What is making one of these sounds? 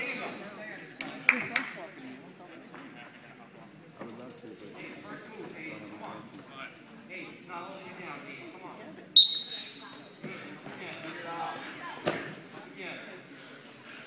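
Wrestlers' bodies thump and scuffle on a mat.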